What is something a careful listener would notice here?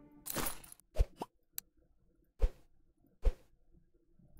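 Short menu clicks tap now and then.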